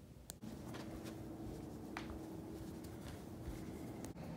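Socked feet step softly on a wooden floor.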